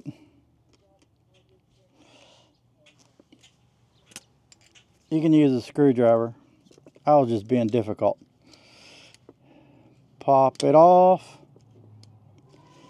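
A metal pick scrapes and taps against a brake part.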